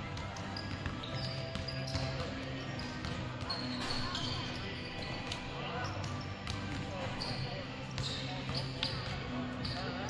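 Basketballs bounce with hollow thuds in a large echoing gym.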